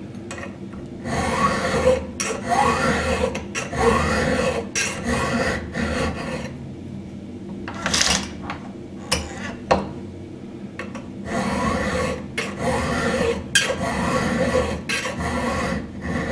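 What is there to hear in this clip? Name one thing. A file rasps back and forth across a metal chain tooth in steady strokes.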